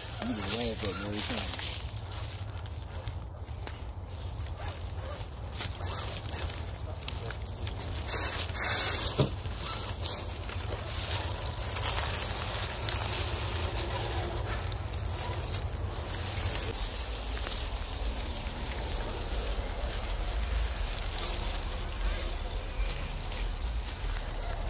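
Toy truck tyres crunch over dry leaves and gravel.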